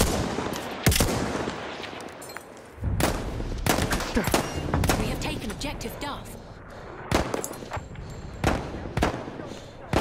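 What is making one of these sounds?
Gunshots crack and boom repeatedly.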